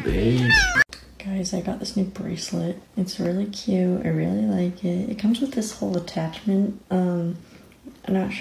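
A cat purrs loudly up close.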